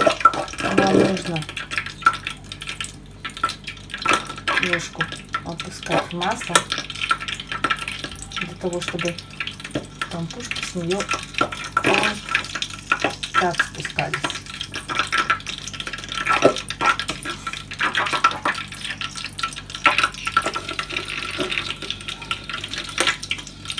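A metal spoon scrapes and clinks against the inside of a steel pot.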